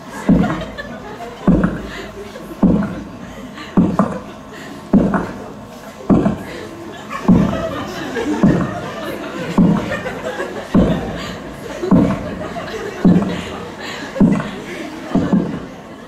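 Footsteps thud slowly and evenly across a wooden stage in a large echoing hall.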